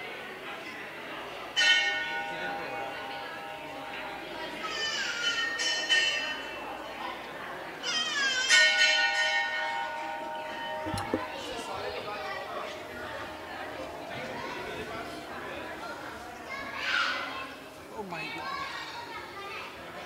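A crowd of men and women murmur and chat nearby.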